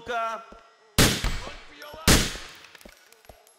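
A pistol fires two loud shots that echo.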